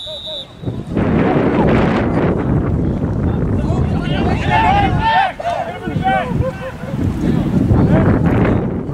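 Wind blows loudly outdoors.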